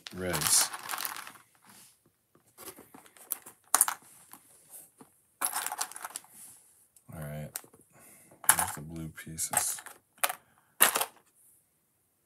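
Small plastic pieces rattle and clatter as a hand rummages through them.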